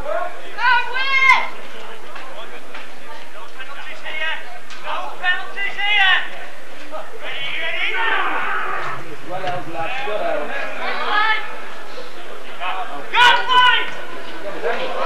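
Men on a rugby pitch shout calls outdoors.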